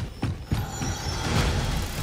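A large creature roars and growls.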